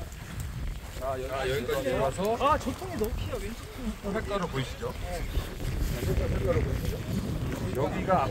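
Men talk nearby in casual voices.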